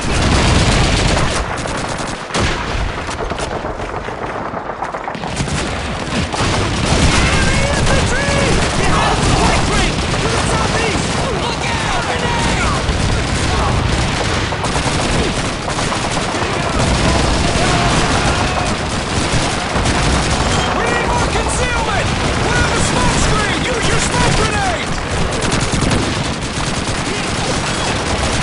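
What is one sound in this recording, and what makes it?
Guns fire in rapid bursts nearby.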